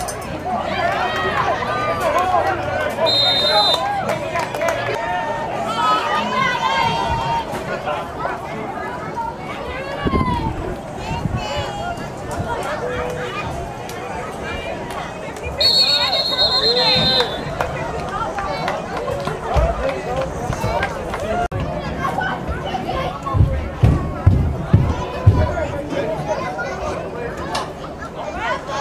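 Spectators and coaches chatter and call out outdoors.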